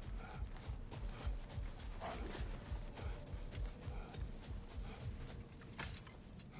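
Heavy footsteps crunch quickly on gravelly ground.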